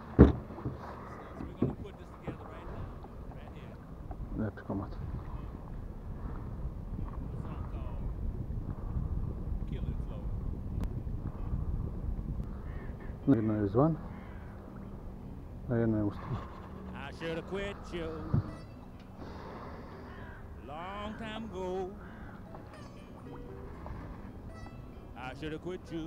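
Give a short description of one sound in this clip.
Water laps gently against a small boat's hull.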